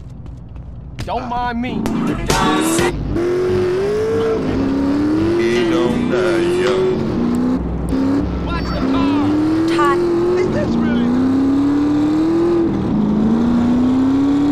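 A motorcycle engine revs and climbs in pitch through repeated gear changes.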